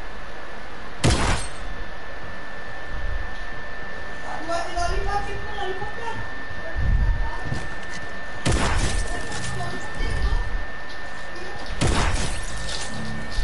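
Gunshots ring out sharply, each followed by a short echo.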